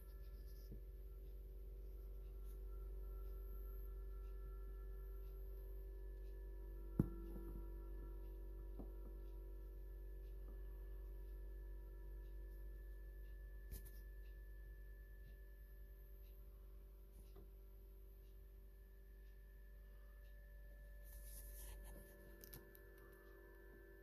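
An incubator fan hums steadily.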